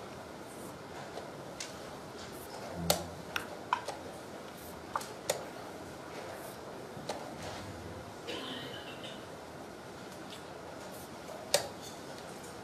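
A chess clock button clicks as it is pressed.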